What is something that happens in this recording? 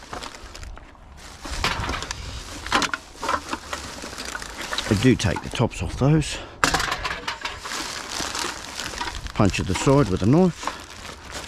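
Plastic bags rustle and crinkle as hands rummage through them.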